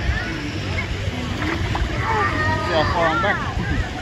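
A toddler splashes into pool water.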